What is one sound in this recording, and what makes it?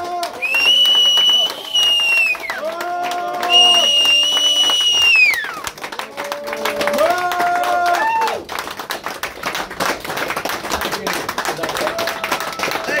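A live rock band plays.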